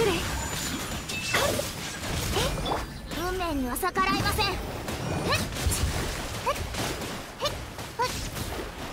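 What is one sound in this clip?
Bright chimes and whooshing effects ring out in bursts.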